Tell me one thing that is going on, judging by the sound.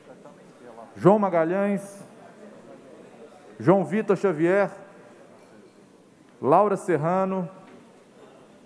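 A man announces through a loudspeaker in a large hall, in short repeated phrases.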